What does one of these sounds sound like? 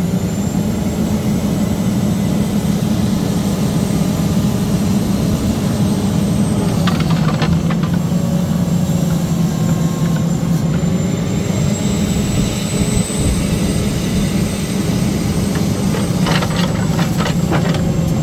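A hydraulic pump whines as a grapple boom moves.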